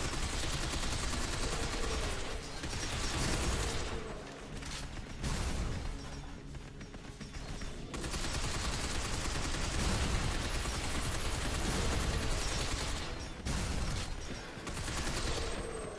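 Explosions boom and debris clatters.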